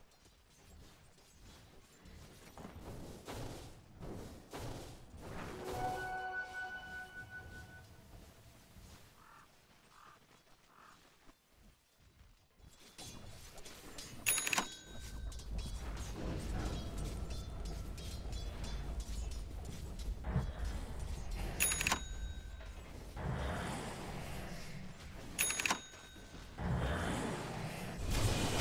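Spell effects and weapon blows crackle and clash in a fight.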